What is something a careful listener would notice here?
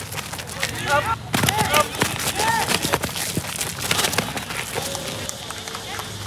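Footsteps patter quickly on a running track.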